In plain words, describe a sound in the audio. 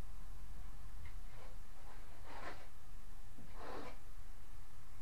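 A trowel scrapes against a wall in short strokes.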